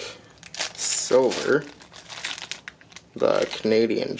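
Coins clink in a plastic bag.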